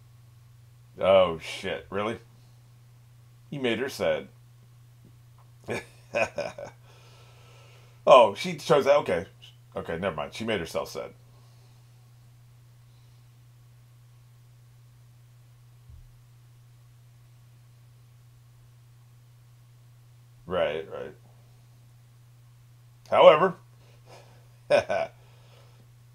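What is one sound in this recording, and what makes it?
An older man talks calmly into a microphone, in short bursts with pauses.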